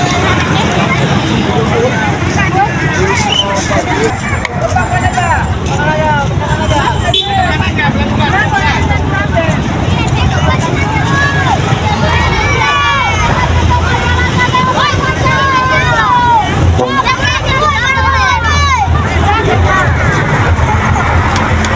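A crowd of children chatters and shouts close by, outdoors.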